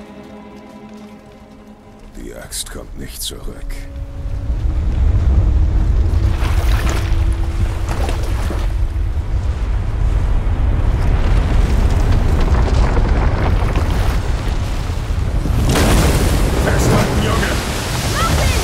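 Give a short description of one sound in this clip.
A man speaks in a deep, gruff voice.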